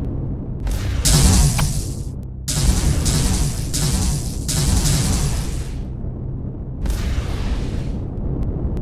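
A mining drill grinds through rock in loud bursts.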